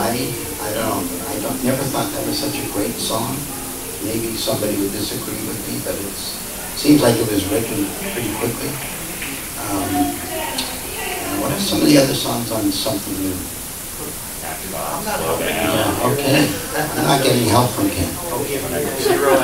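A middle-aged man talks with animation into a microphone in a large room.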